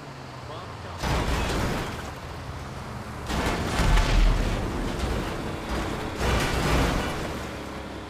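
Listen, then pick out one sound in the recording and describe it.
Loud explosions boom one after another, each rumbling away.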